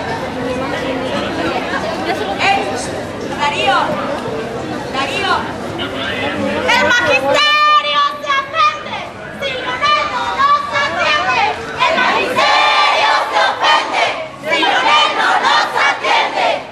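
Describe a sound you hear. A crowd of people talk and shout outdoors.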